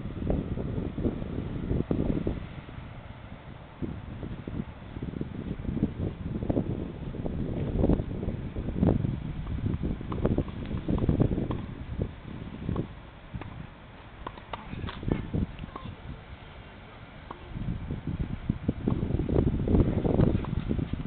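A tennis ball is hit back and forth with rackets, each shot a short pop.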